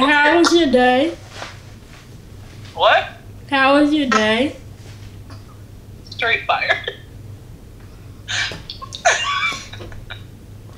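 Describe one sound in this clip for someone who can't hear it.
A boy talks with a laugh.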